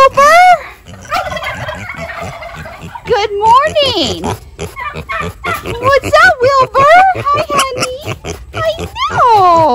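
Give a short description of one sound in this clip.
Straw rustles as a pig roots through it.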